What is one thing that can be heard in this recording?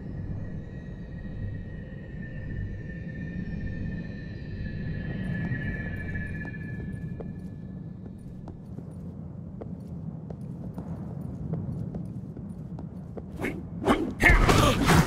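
Low, dark ambient music hums steadily.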